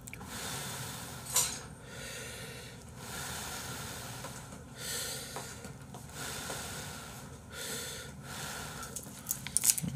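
A man slurps noodles close to a microphone.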